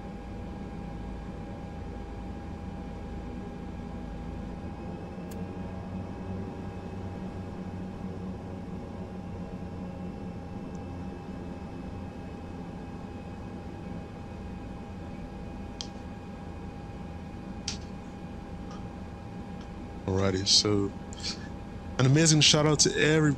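An aircraft engine hums steadily at idle.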